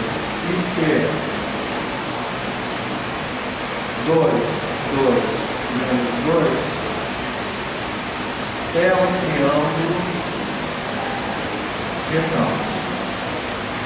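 A middle-aged man speaks calmly in short phrases.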